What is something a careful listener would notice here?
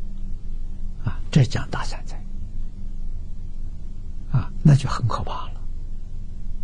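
An elderly man speaks calmly and warmly into a close microphone.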